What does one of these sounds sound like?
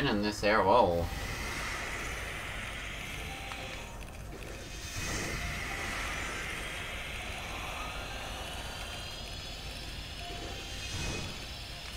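Video game dashing effects whoosh and hum.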